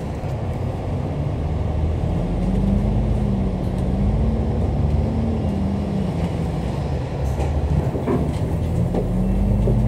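A bus engine rumbles and hums steadily as the bus drives along.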